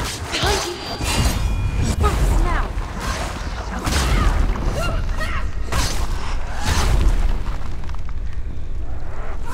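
Heavy blows thud deeply.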